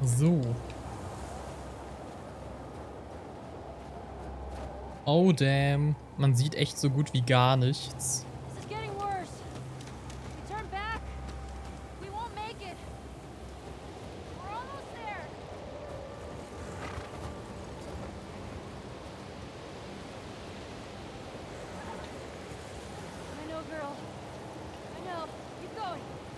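Horse hooves crunch through deep snow.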